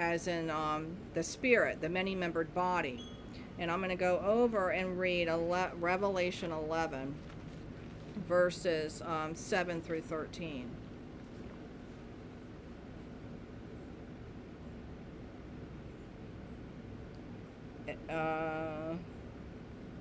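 An older woman speaks calmly and slowly close to a microphone.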